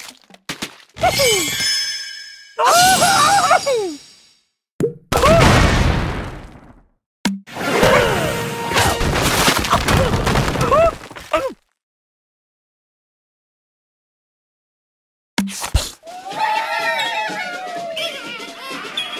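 Cartoon birds squawk in high, bending cries.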